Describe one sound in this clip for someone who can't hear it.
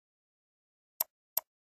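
A mouse clicks twice.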